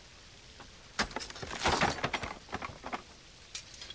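A heavy wooden chest lid creaks open.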